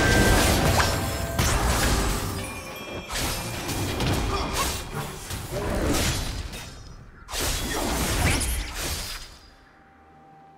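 Magic blasts and sword strikes crack and whoosh in a fast game battle.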